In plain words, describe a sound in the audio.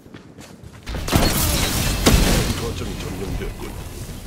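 An energy blast bursts with a loud whoosh.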